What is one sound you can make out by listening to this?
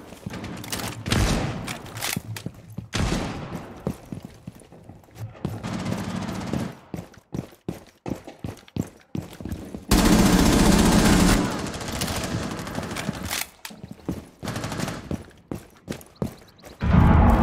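Footsteps thud on hard floors and stairs.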